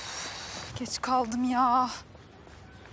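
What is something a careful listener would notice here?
A woman calls out a cheerful greeting from a short distance.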